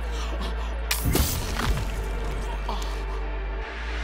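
A body thuds heavily to the ground in a brief scuffle.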